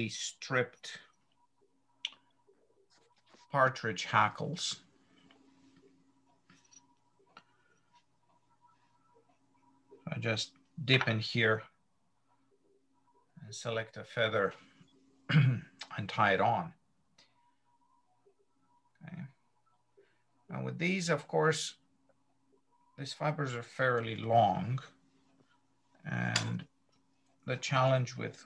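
A middle-aged man talks calmly through an online call, in short bursts with pauses.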